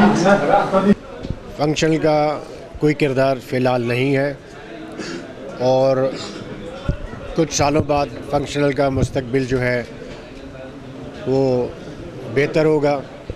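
A middle-aged man speaks firmly into a microphone.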